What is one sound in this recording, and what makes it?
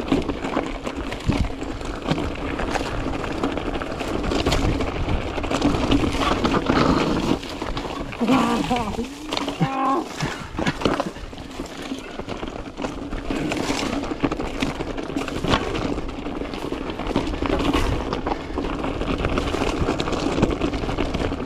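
Bicycle tyres crunch and roll over loose rocky gravel.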